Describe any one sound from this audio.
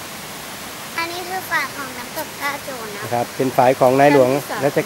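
A young girl talks close by in a high, lively voice.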